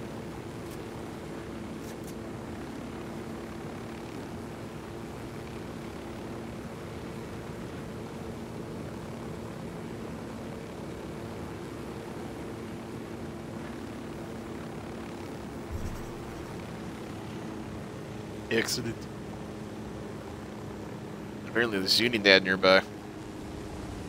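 A helicopter's rotor and engine hum steadily.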